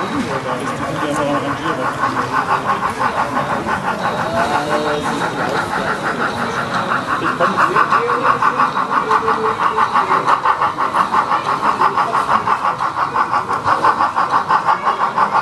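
A model steam locomotive chuffs steadily as it rolls slowly along the track.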